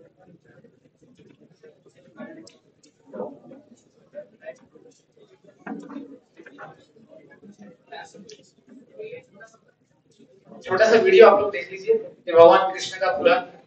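An audience murmurs and chatters quietly in a large echoing hall.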